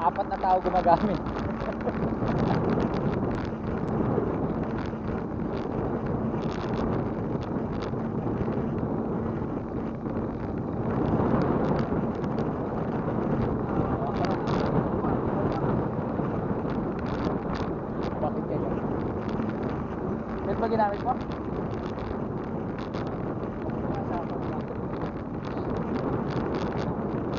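Wind rumbles steadily across a bicycle ride outdoors.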